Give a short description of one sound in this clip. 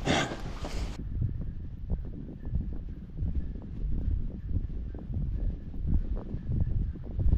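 Wind buffets the microphone as a bicycle rides along.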